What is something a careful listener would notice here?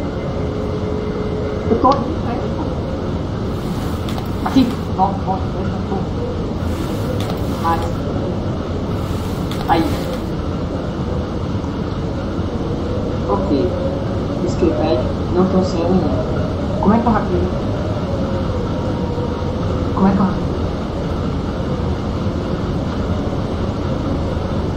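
A ceiling fan whirs steadily overhead.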